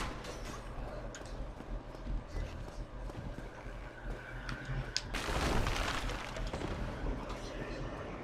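Footsteps crunch over rough ground in an echoing cave.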